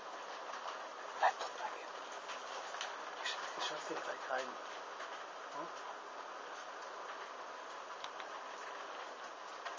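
Flames crackle softly as fabric burns.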